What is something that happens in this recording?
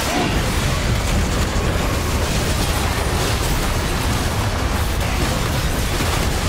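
Magic blasts and explosions crackle and boom in a busy video game battle.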